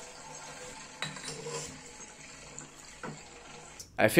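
Glassware clinks as a glass flask is fitted into place.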